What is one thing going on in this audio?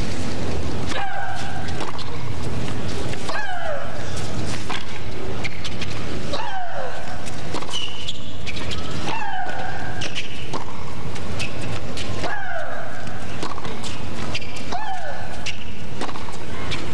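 A tennis ball is struck hard with a racket, back and forth.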